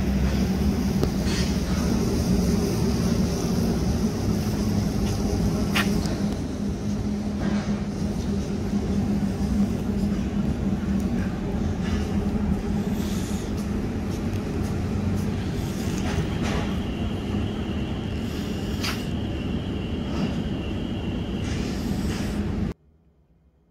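Street noise hums steadily outdoors.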